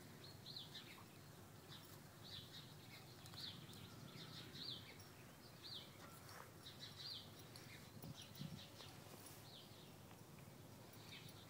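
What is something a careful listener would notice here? A horse tears and chews grass close by.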